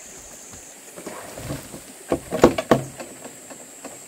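Dirt tumbles out of a tipped wheelbarrow.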